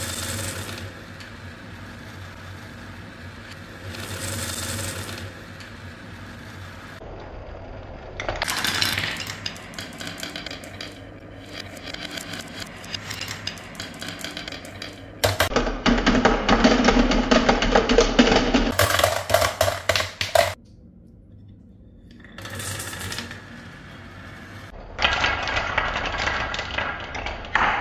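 Glass marbles roll and rattle along a wooden track.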